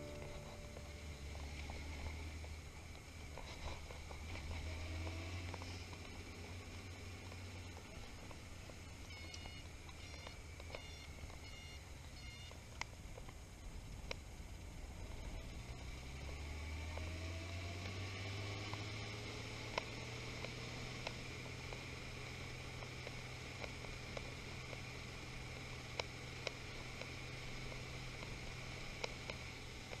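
A motorcycle engine rumbles steadily, rising and falling as the rider speeds up and slows down.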